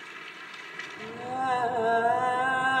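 A young man sings close by.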